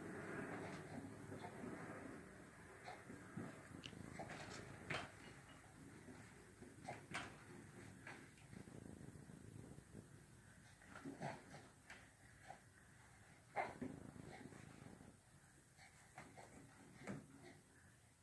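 A baby bounces in a hanging baby jumper, its springs and straps creaking and clacking.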